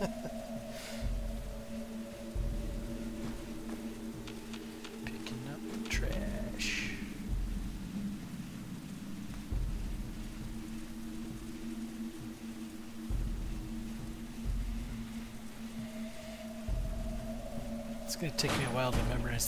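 Heavy armored footsteps thud slowly and evenly on a hard floor.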